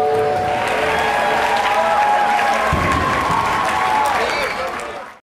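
A live band plays loudly through large loudspeakers outdoors.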